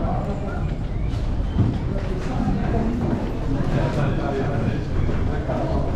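Footsteps shuffle on a tiled floor.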